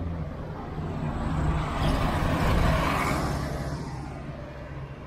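A bus passes close by with a loud engine roar.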